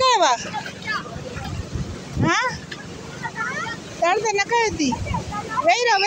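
A child's feet splash while wading through shallow seawater.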